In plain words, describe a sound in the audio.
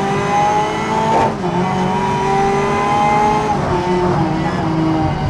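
A racing car engine roars at high revs, shifting gears up and down.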